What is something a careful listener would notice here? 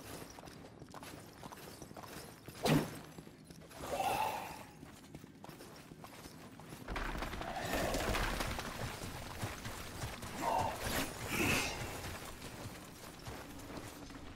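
Footsteps run over stone floors.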